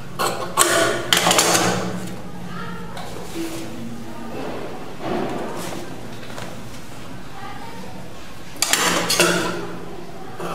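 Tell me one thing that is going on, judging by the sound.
Paper slides across a table under a hand.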